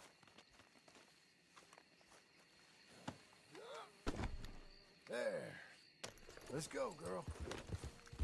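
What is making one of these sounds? A horse snorts nearby.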